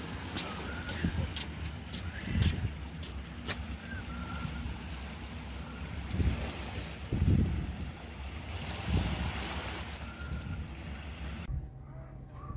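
Small waves lap gently at a shore.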